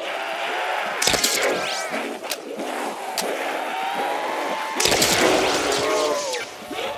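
An electric gun fires with loud crackling zaps.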